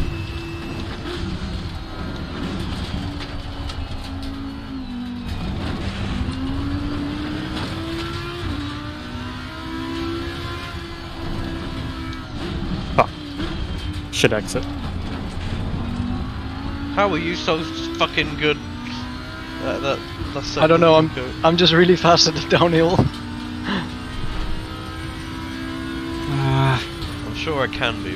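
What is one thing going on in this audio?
A race car engine roars, revving up and dropping as gears change.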